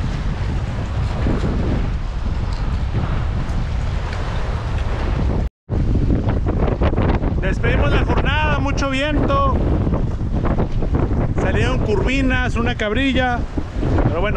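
Wind blows hard and rumbles outdoors.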